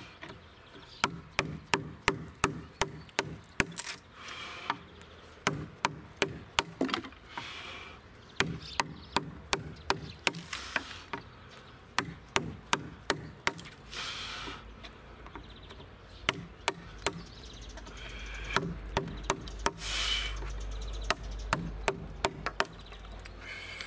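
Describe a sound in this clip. A wooden mallet taps a chisel in quick, sharp knocks.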